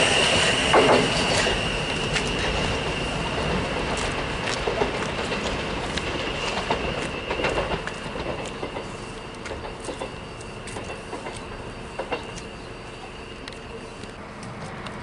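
A train rolls slowly over points in the distance with clicks and clatters of wheels on rails.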